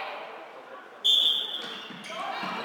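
A referee's whistle blows sharply once in a large echoing hall.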